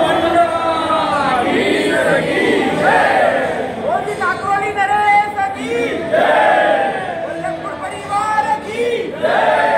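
A crowd of men cheers loudly.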